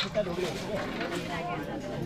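Water pours from a small metal jug into a basin.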